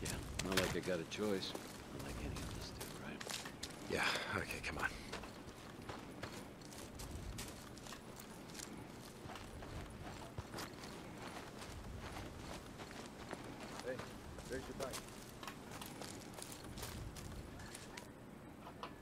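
Footsteps crunch over dry grass and gravel.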